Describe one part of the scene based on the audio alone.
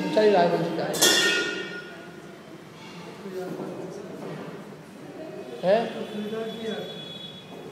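A man speaks loudly through a microphone and loudspeakers, with pauses.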